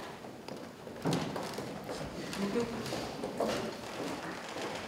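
Footsteps thump on a wooden stage.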